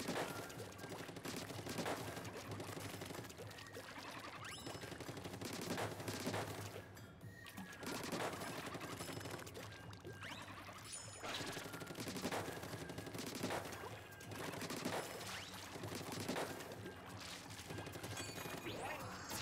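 Cartoon ink shots splatter in quick, repeated bursts.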